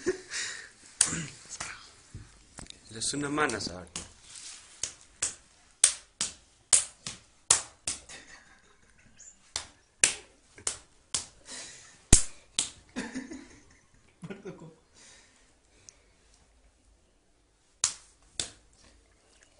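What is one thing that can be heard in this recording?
Hands slap sharply at close range, over and over.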